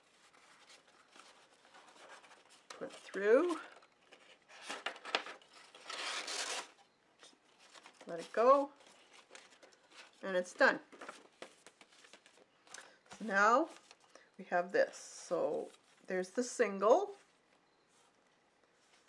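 Paper rustles and crinkles as it is folded by hand.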